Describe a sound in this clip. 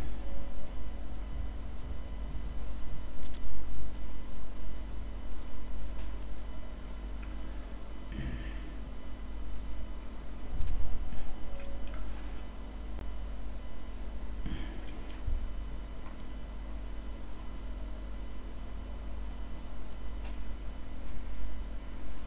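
A pencil scratches and sketches on paper.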